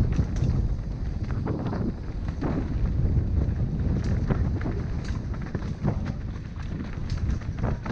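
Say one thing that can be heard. Tyres crunch and rattle over rocks and dirt.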